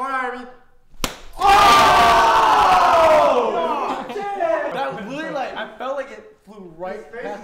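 A group of young men burst into loud laughter and cheers.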